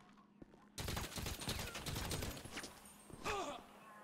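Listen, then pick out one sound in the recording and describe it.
Rapid gunshots ring out in an echoing room.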